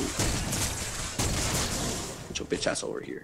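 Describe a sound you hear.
Rapid weapon fire and energy blasts crackle in a fight.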